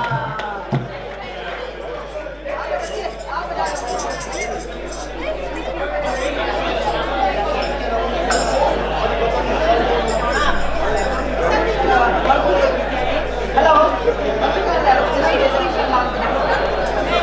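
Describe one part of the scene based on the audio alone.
Several women chatter and laugh nearby.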